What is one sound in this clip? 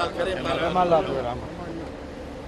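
Men talk with animation close by.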